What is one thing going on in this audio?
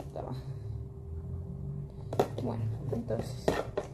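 A plastic container rattles and clicks.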